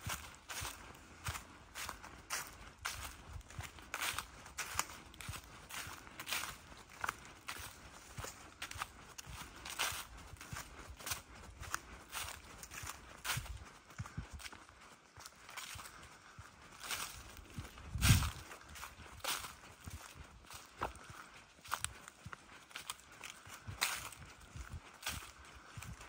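Footsteps crunch steadily through dry leaves.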